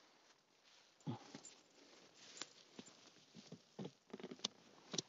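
Leaves rustle and crunch underfoot.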